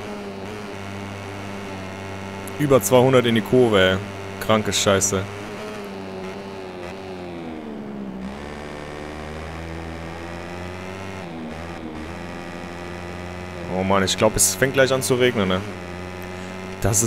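A motorcycle engine drones steadily, its pitch dropping and rising again as it slows for a bend.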